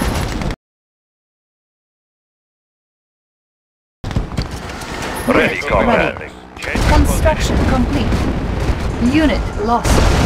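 Gunfire and explosions crackle and boom in a battle.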